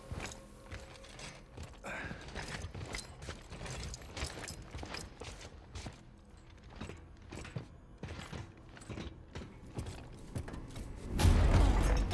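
Heavy boots clank on a metal floor at a steady walk.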